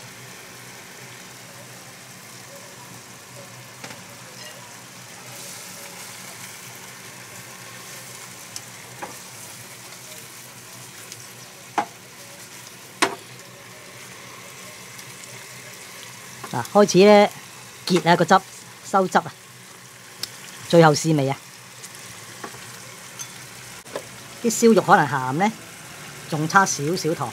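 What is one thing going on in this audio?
Food simmers and bubbles gently in a pan.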